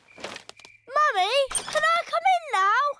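A young boy speaks with animation in a cartoon voice.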